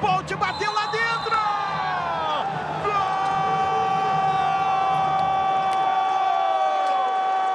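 A large crowd cheers and roars in an echoing indoor arena.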